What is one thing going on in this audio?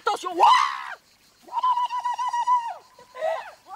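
A young woman laughs loudly and happily.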